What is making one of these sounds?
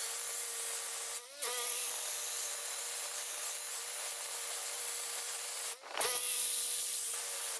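An angle grinder whines loudly as its disc cuts into stone.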